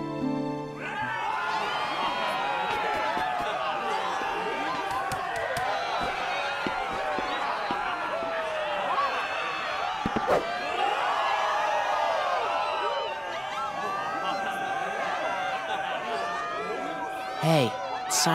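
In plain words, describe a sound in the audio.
A crowd cheers and chatters loudly nearby.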